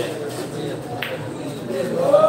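A cue ball is struck with a sharp click.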